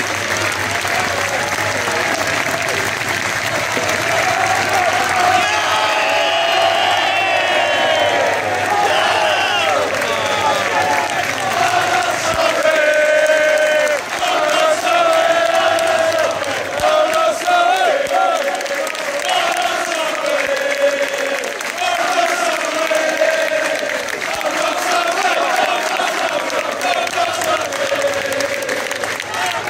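A large crowd of fans sings and chants loudly outdoors.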